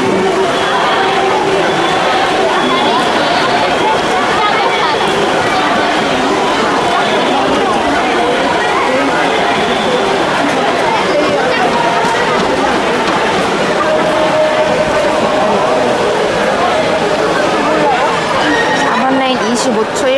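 Swimmers splash and churn through water.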